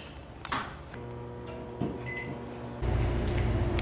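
A microwave hums steadily as it runs.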